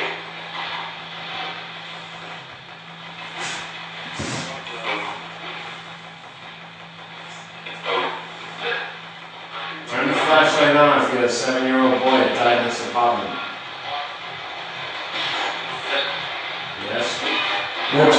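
Sound plays from a small television across a room.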